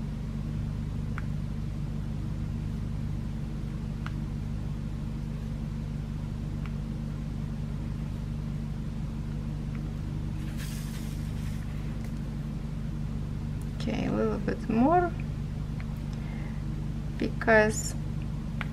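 A plastic pen tool softly clicks as small beads are pressed into place.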